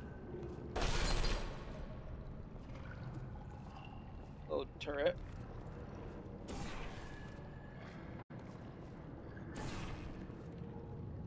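A portal gun fires with a sharp electronic zap.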